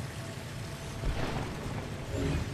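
A dust cloud bursts with a soft puff.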